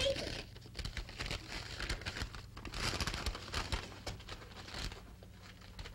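Objects clatter and knock as children rummage through a wooden trunk.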